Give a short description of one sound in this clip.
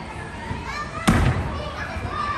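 A gymnast lands with a heavy thud on a soft mat.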